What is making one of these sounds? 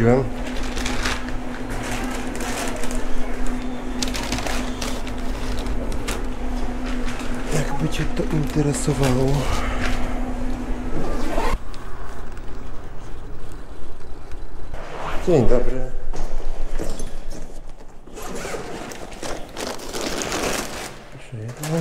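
A foil-lined bag crinkles and rustles as hands pack it.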